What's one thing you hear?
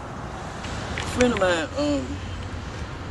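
A woman speaks sharply and close by.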